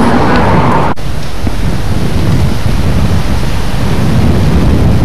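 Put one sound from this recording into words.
A boat engine rumbles low and steadily.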